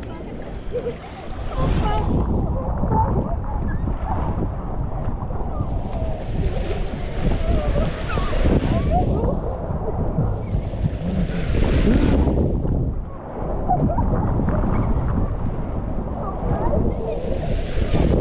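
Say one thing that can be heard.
Wind rumbles against a microphone.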